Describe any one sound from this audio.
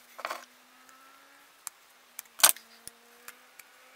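Pliers clack onto a wooden board.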